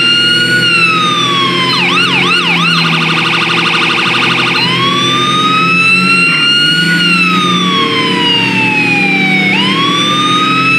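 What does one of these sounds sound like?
A police siren wails, switching between a slow rise and fall, quick yelps and a rapid warble.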